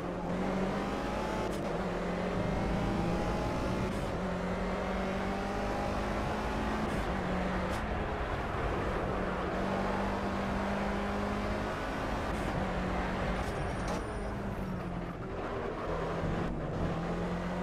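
A racing car engine roars, revving up and dropping with each gear change.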